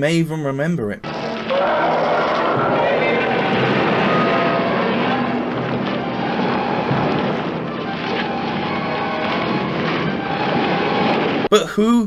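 Giant monsters roar loudly.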